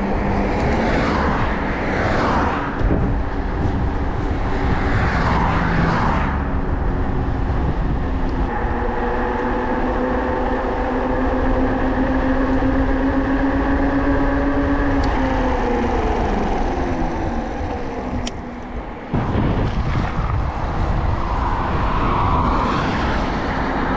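A car drives past on a nearby road.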